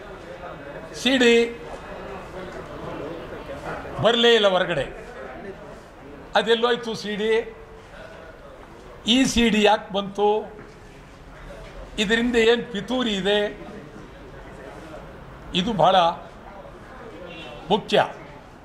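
A middle-aged man speaks close to a microphone in short, emphatic bursts with pauses.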